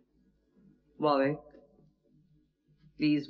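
A man calls out in a loud, ringing voice.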